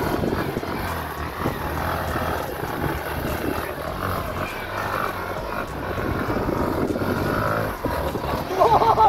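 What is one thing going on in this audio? Tyres spin and spray across loose sand.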